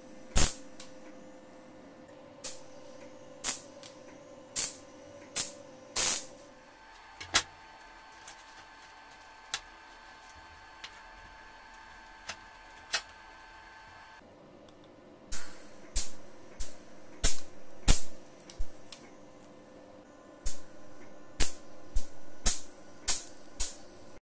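A welding torch crackles and sizzles in short, sharp bursts.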